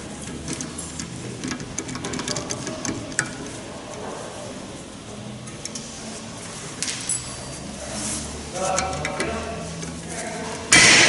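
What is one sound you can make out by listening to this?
Metal tools click and clink against metal.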